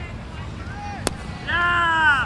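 A cricket bat knocks a ball once, far off outdoors.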